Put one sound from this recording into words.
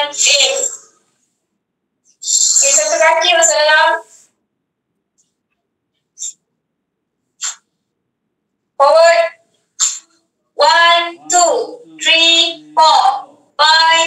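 A young woman speaks calmly through an online call, giving instructions in short bursts.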